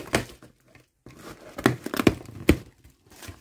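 Bubble wrap crinkles as it is pulled from a box.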